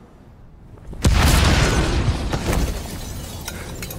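An explosion booms loudly, then rumbles and fades.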